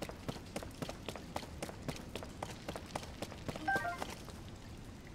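Footsteps splash quickly through shallow water.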